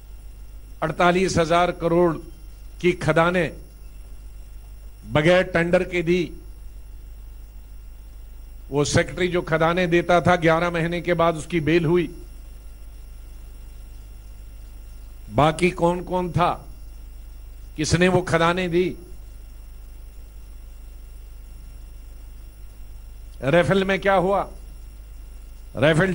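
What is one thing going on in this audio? A man speaks into a microphone in short bursts with pauses.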